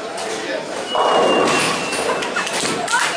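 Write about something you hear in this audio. Bowling pins crash and clatter loudly.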